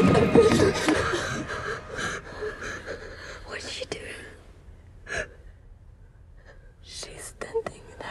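A young girl whispers softly close by.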